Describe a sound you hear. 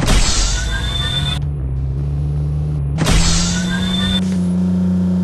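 A rushing whoosh sweeps past.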